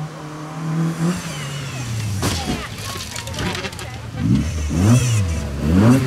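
A second rally car engine revs hard as it approaches and passes.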